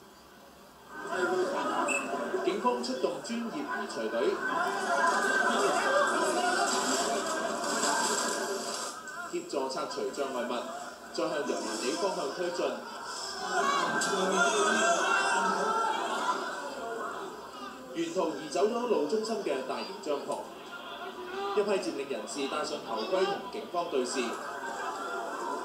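A crowd shouts.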